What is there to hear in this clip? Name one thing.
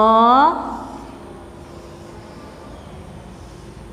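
A marker squeaks on a whiteboard.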